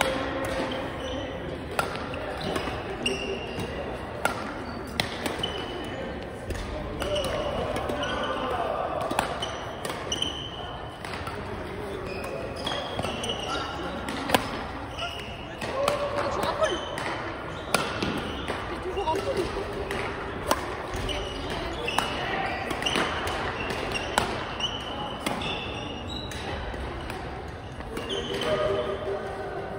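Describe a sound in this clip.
Rackets strike a shuttlecock with sharp pops, back and forth.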